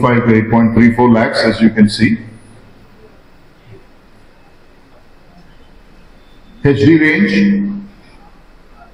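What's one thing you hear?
A middle-aged man speaks into a microphone over loudspeakers in a large hall.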